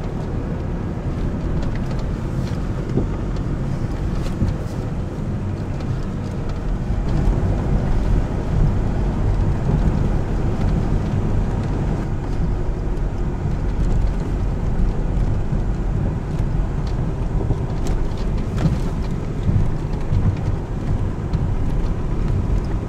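Tyres crunch and rattle over loose rocks.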